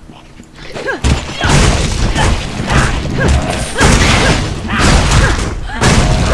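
Fiery spell blasts crackle and boom in a fight.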